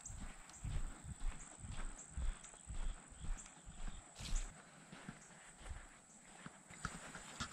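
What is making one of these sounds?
Footsteps crunch on a dirt road.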